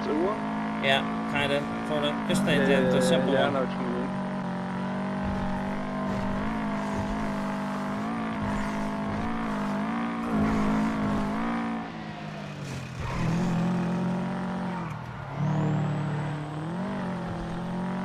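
A car engine hums steadily and revs up and down as the car drives.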